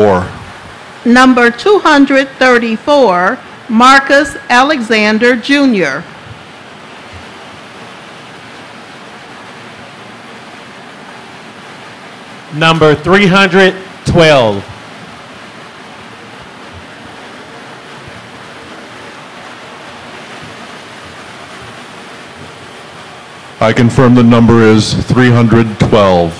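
An older man speaks calmly into a microphone, heard through loudspeakers in a large room.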